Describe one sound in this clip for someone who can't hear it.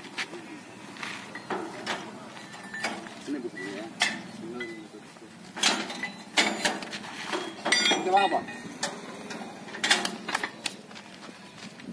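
Metal clanks as men handle a motorbike.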